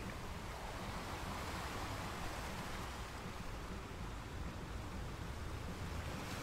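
Waves break and wash steadily over rocks.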